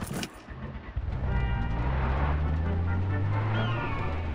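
A pickup truck engine starts and runs.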